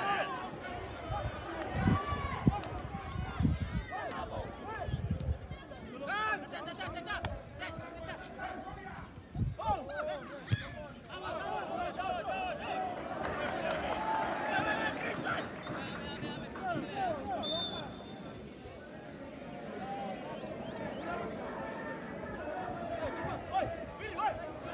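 Young men shout and call to each other outdoors across an open field.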